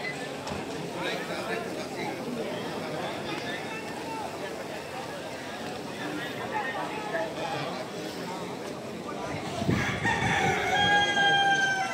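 A crowd of people talks in a low murmur outdoors.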